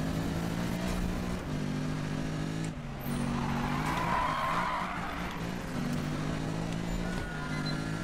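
A racing car engine roars at high speed, shifting gears up and down.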